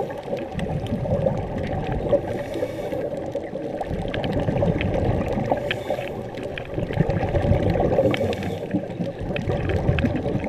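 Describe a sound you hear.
Air bubbles gurgle and rumble steadily underwater.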